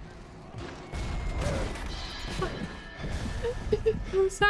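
A grenade launcher fires with loud bangs.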